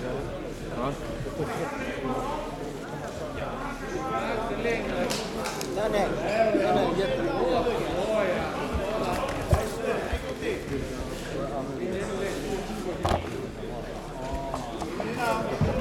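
Bodies scuffle and thump on a mat.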